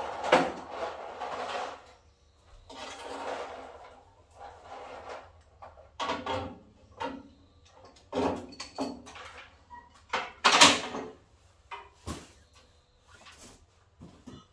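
Metal clanks and knocks against a tractor.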